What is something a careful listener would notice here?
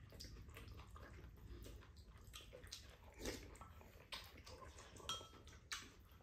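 Noodles are slurped loudly.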